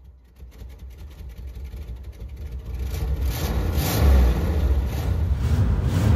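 Car tyres spin and screech on pavement.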